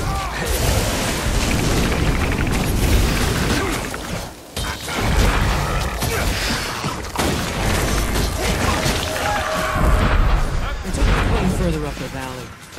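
Magic spells burst and crackle loudly in a fight.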